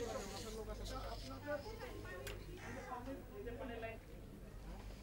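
Several men and women talk nearby at once.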